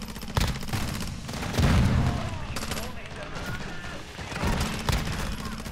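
Gunshots and explosions crack and boom loudly.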